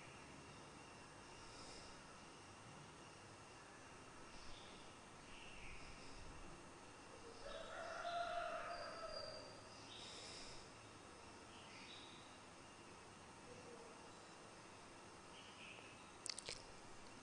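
A man speaks slowly and softly into a microphone.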